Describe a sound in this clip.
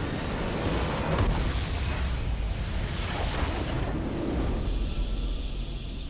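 A large structure in a game explodes with a deep boom.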